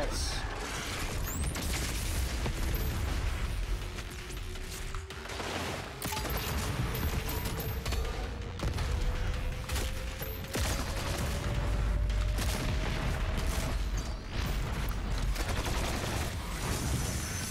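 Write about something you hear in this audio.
Electric beams crackle and hum.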